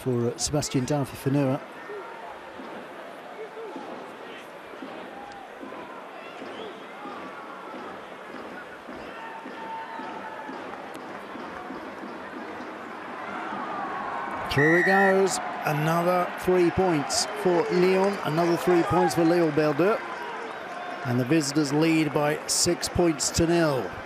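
A large crowd murmurs in a stadium.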